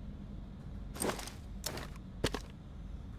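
Gear rustles and clatters as items are quickly picked up.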